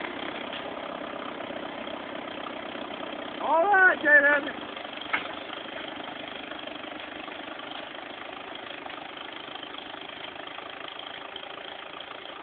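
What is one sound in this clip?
A tractor engine drones steadily and slowly fades as it moves away.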